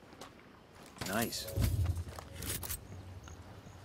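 A rifle clanks as it is picked up.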